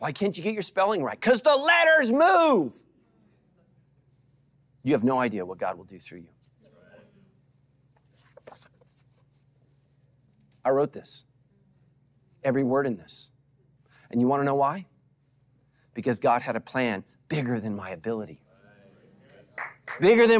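A middle-aged man speaks calmly and with emphasis into a microphone, pausing often.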